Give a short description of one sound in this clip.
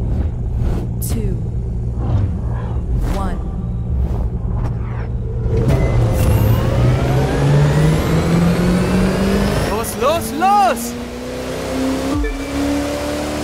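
A sports car engine roars and revs higher as it accelerates.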